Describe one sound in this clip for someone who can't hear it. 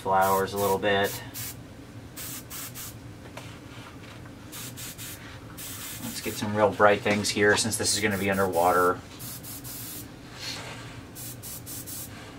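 An airbrush hisses in short bursts of spray.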